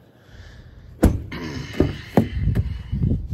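A car door clicks and swings open.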